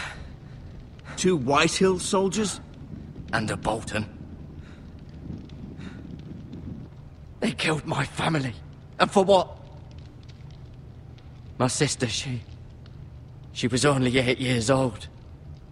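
A young man speaks quietly and sadly, close by.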